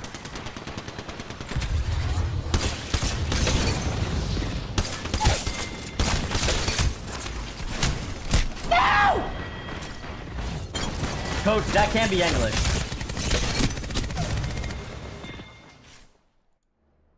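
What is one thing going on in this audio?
Rapid gunfire rattles loudly with crackling blasts.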